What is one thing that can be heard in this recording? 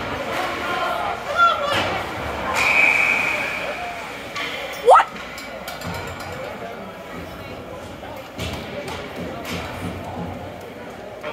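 Ice skates scrape and glide across an ice rink.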